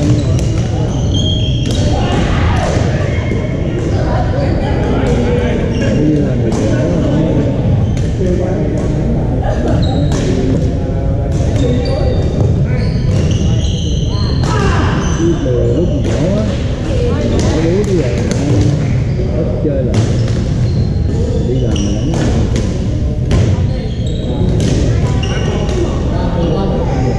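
Players' voices chatter and call out in a large echoing hall.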